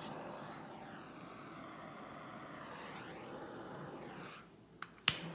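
A torch hisses steadily, then cuts off.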